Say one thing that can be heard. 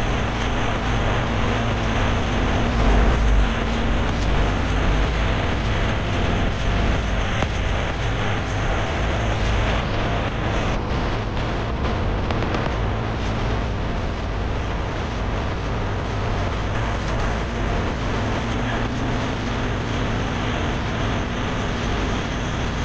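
Wind rushes steadily and roughly past the microphone.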